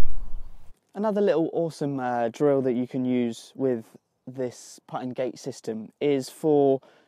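A young man talks calmly and clearly, close by.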